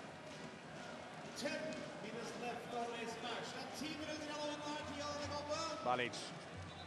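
A handball bounces on the court.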